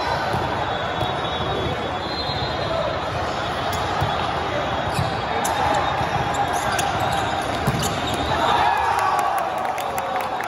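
A crowd murmurs and shouts throughout a large echoing hall.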